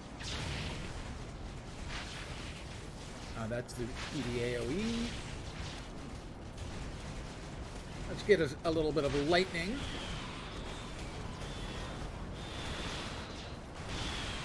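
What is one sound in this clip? Game battle effects crackle and whoosh throughout.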